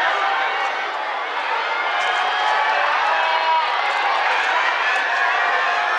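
A small crowd of spectators shouts and cheers from a distance, outdoors.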